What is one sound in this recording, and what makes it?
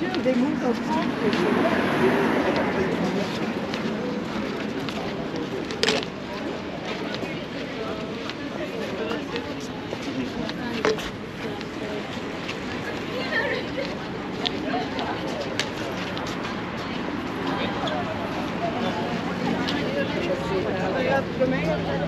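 Outdoors, a crowd of men and women chatters nearby.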